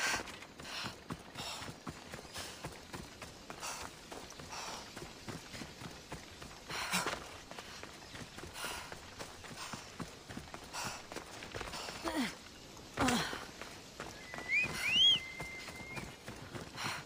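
Footsteps crunch steadily over rocky ground.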